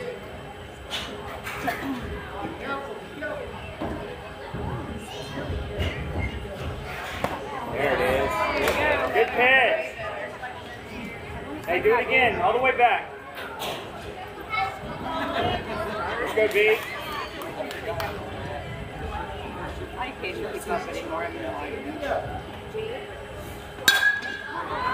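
A ball pops into a catcher's mitt.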